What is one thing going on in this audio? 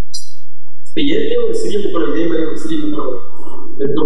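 A man speaks clearly and steadily close to a microphone.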